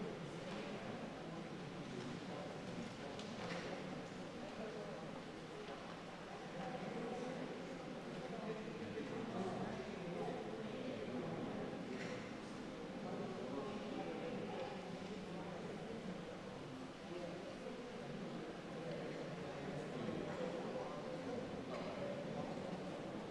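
Men and women chat quietly in a room that echoes.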